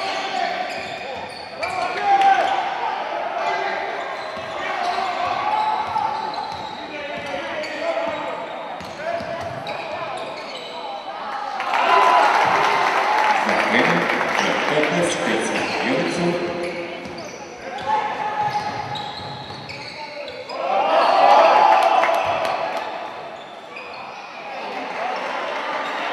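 Sneakers squeak sharply on a wooden floor.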